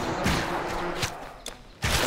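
A magic spell bursts with a whooshing rush.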